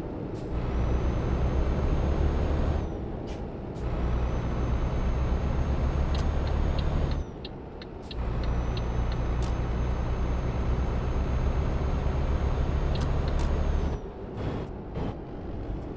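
A truck engine drones and revs, dropping briefly between gear changes.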